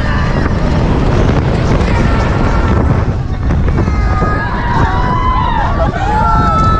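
A roller coaster rattles and rumbles along its track.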